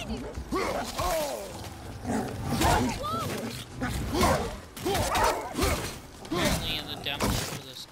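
An axe strikes with heavy thuds.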